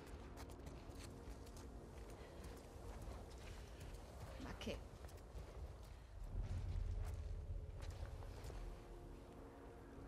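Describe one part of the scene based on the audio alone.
Tall grass rustles as someone creeps through it.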